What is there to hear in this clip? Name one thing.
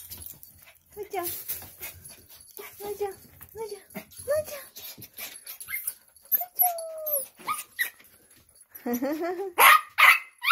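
A small dog whines eagerly.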